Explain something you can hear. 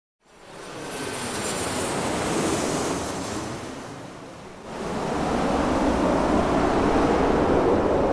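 A jet airliner roars steadily as it flies.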